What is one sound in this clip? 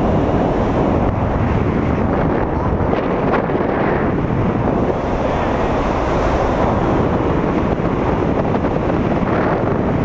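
Strong wind roars and buffets loudly throughout.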